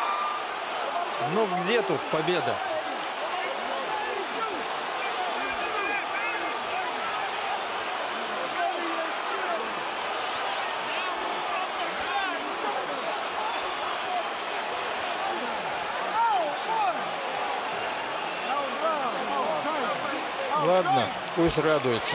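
Men talk excitedly close by.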